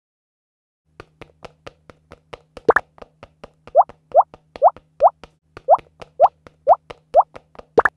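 A tablet game plays rapid ticking sounds with short rising bloops.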